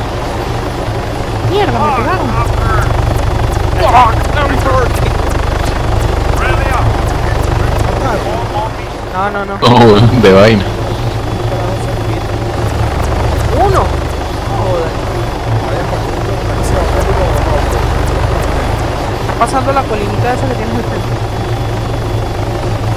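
A helicopter's rotor thumps steadily close by.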